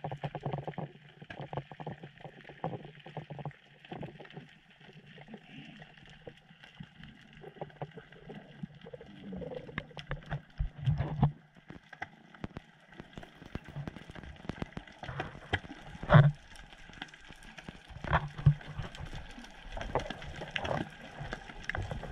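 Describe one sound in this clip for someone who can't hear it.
Muffled underwater knocks and rustles come from a swimmer's movements.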